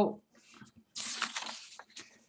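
Paper rustles as a sheet is lifted.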